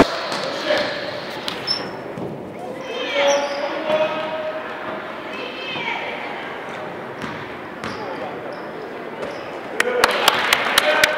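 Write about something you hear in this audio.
Sneakers squeak on a wooden court in a large echoing gym.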